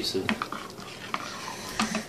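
A spoon scrapes and clinks in a bowl.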